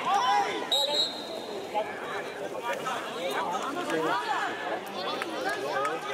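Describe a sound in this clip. Young men shout and call out to each other across an open outdoor pitch.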